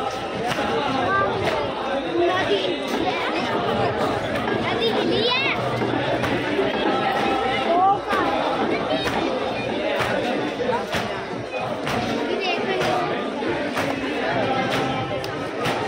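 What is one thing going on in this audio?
A crowd of men talks and calls out nearby outdoors.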